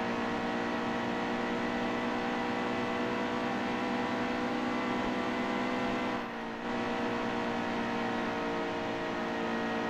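Tyres hum on the track.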